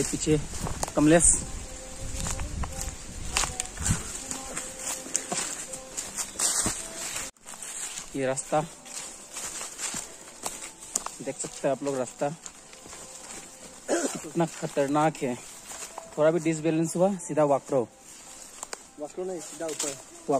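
Footsteps crunch on dry leaves and dirt along a path.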